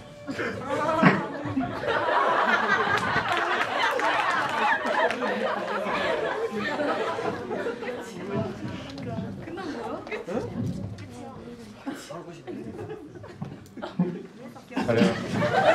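Several young men sing together in an echoing hall.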